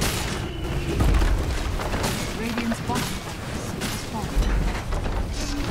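A building crumbles and explodes with a deep rumble.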